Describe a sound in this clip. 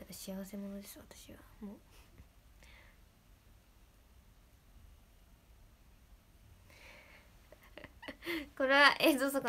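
A young woman speaks softly and cheerfully close to a microphone.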